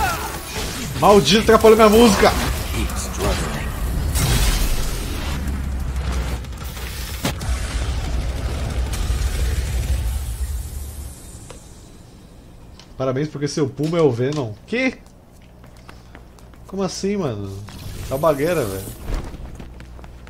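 A man talks with animation close to a headset microphone.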